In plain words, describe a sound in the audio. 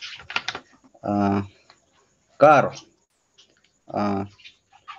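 A man speaks in short, drawn-out bursts over an online call.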